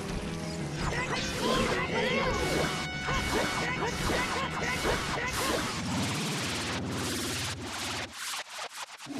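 A sword slashes and clangs against a creature in quick strikes.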